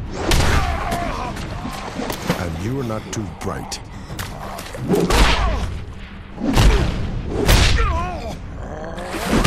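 A monstrous man snarls and roars.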